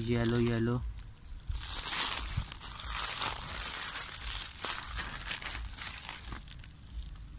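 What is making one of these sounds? Plastic bubble wrap crinkles and rustles as hands unwrap it.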